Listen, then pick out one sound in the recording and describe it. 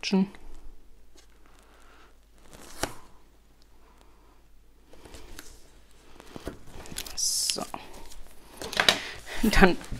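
Card stock rustles and taps as it is handled and folded.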